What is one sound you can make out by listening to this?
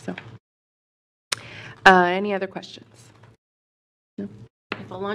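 A woman speaks into a microphone in a calm, conversational voice.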